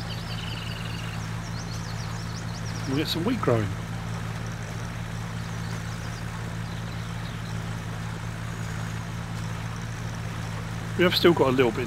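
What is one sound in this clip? A tractor engine hums steadily at a low idle.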